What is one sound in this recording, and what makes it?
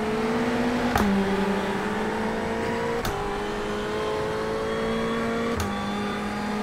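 A gearbox clicks sharply with each gear change.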